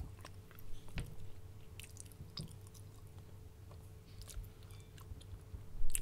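Chopsticks click softly against a plate.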